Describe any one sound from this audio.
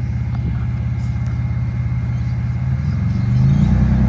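A car engine idles with a deep, lumpy rumble.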